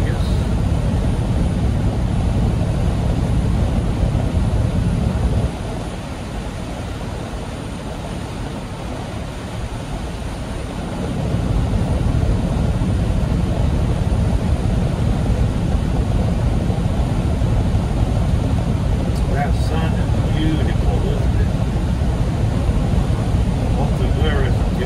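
A vehicle engine drones steadily while driving on a highway.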